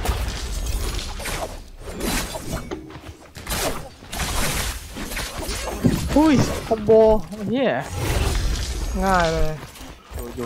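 Blades clash and slash in a fast fight.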